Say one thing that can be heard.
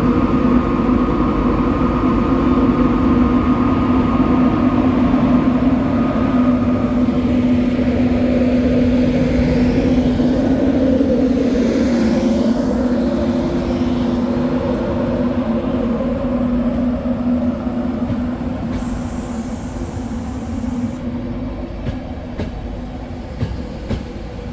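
A locomotive engine hums and drones loudly close by.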